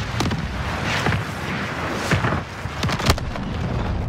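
Bursts crackle and pop overhead.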